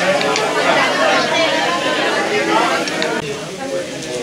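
Several women chat nearby.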